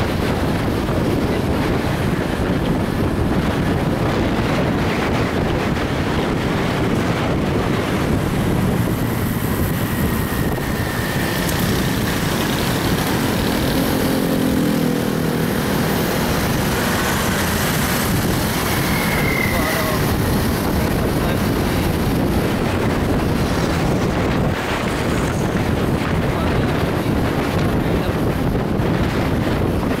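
Traffic rumbles along the road nearby.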